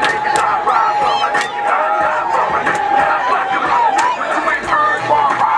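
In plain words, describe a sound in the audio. A crowd of young people cheers and shouts loudly.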